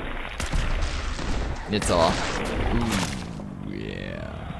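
A large creature shrieks and growls.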